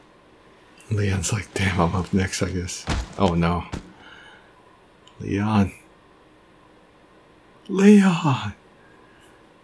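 A young man talks into a microphone in short bursts.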